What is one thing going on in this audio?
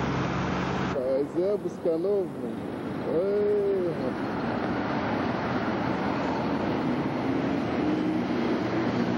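Traffic passes steadily on a busy road.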